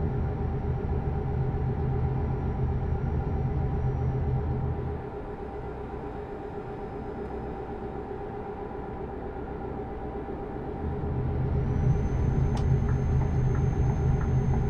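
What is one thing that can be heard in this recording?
A truck engine hums steadily, growing louder and softer.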